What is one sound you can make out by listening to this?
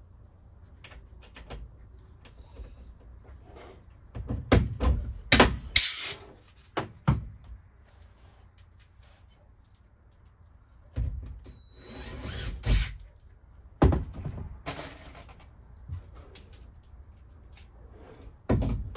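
Tools knock and clatter against a van's metal panel.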